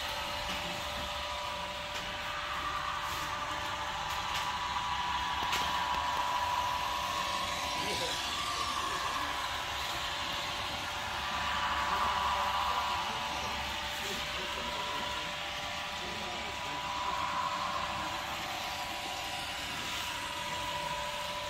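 A small model train whirs steadily along its track.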